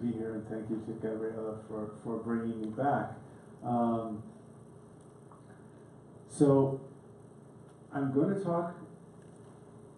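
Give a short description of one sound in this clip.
A man speaks calmly into a microphone, heard over a loudspeaker in a hall.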